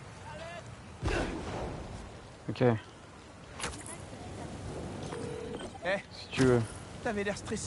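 Webs shoot out with sharp zips.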